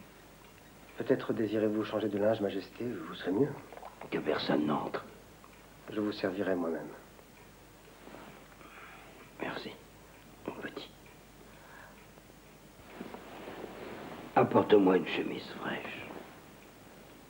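A middle-aged man speaks slowly and wearily, close by.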